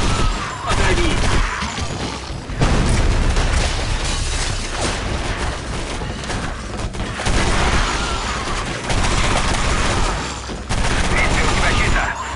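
Automatic guns fire in rapid, loud bursts.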